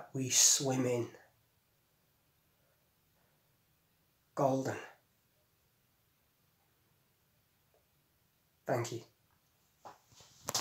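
A young man speaks calmly close to a microphone, in short bursts with pauses.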